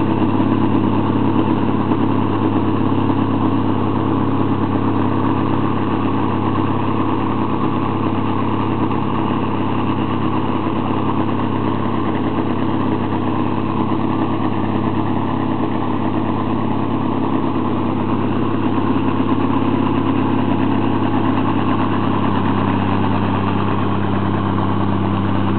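A heavy diesel engine rumbles steadily nearby.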